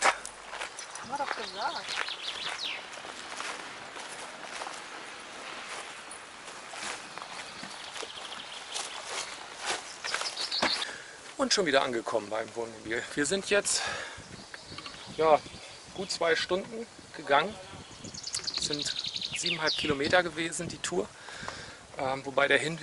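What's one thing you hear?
Birds chirp in the trees outdoors.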